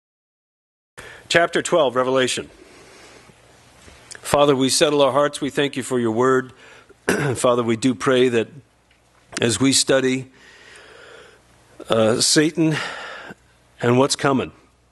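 A man speaks calmly into a microphone in a reverberant hall, pausing between phrases.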